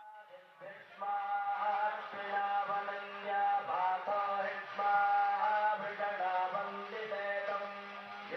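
Musicians play a steady, droning tune on reed instruments.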